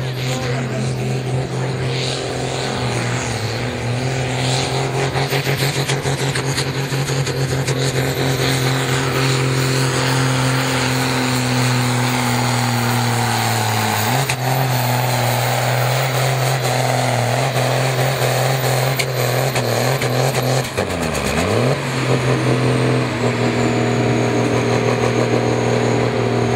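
A tractor engine roars loudly and steadily, labouring under heavy load.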